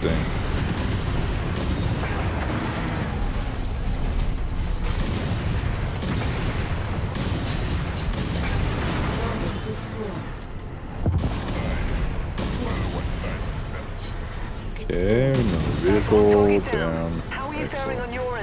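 A heavy machine rumbles and thuds steadily.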